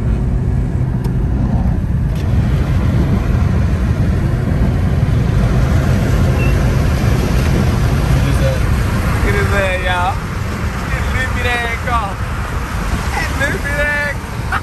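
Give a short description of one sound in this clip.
A car's tyres rumble steadily on a wet road from inside the car.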